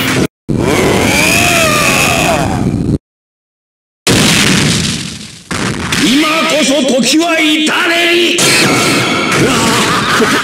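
Heavy punches land with dull thuds.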